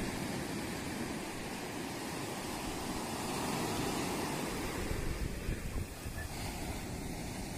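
Wind blows hard across the microphone.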